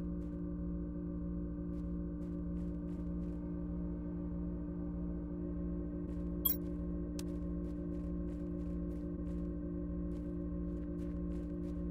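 A low electric hum drones steadily throughout.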